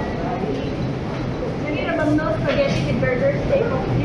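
Men and women chatter in a busy, echoing room.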